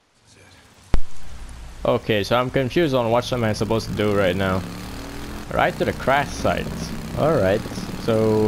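A motorcycle engine starts and runs with a steady rumble.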